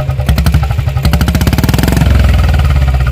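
A motorcycle engine revs up briefly and settles back.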